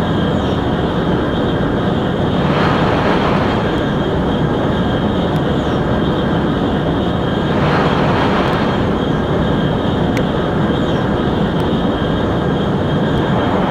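A high-speed train rumbles steadily along the track.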